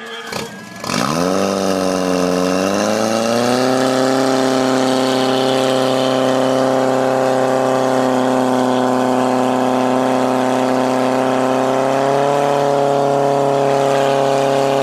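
A fire pump engine starts with a bang and revs up, then roars steadily close by.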